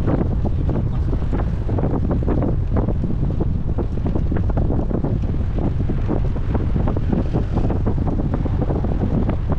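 Bicycle tyres hum on a smooth path.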